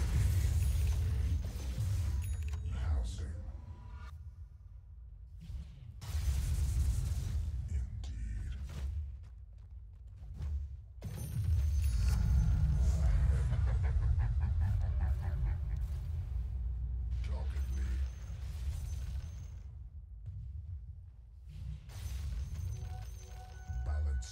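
Magic blasts and clashing weapons crackle and boom in a fast video game battle.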